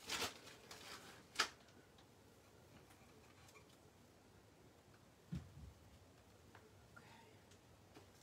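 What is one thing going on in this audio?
Twine rustles as it is pulled and unwound.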